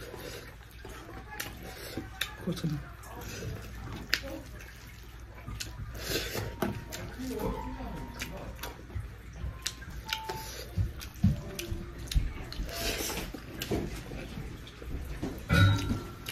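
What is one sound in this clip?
A young woman chews food loudly and wetly close by.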